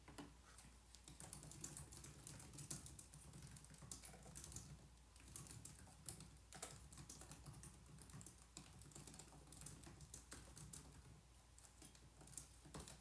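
A woman types quietly on a keyboard.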